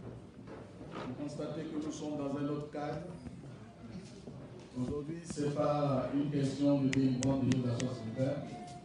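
A man speaks into a microphone, amplified through loudspeakers in an echoing hall.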